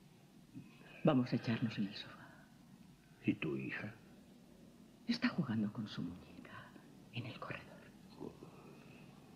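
A man speaks softly, close by.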